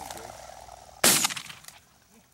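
A shotgun fires a single loud shot outdoors.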